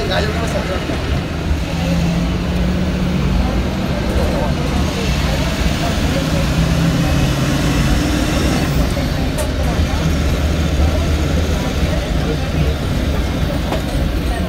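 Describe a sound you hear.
A crowd of young people chatters loudly nearby.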